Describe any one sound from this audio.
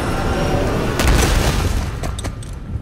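A body hits the ground with a heavy thud.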